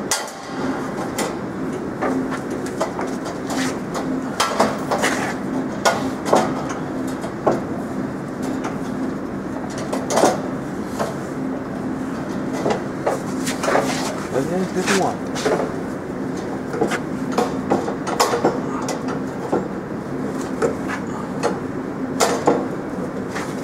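Wire mesh rattles and clinks.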